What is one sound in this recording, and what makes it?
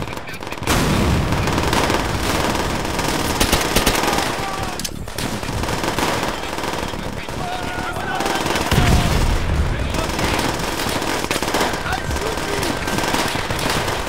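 Gunfire crackles in rapid bursts during a battle.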